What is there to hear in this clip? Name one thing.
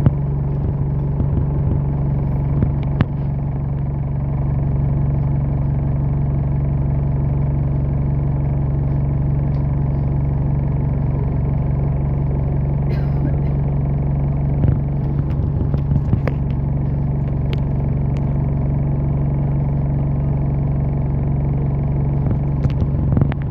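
A large vehicle's engine rumbles steadily.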